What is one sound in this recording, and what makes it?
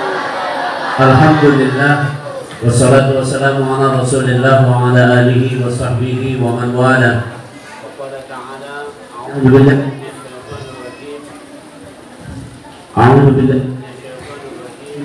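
An elderly man chants and speaks slowly into a microphone, heard through a loudspeaker.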